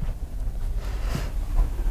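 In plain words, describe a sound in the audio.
A blackboard eraser rubs across a board.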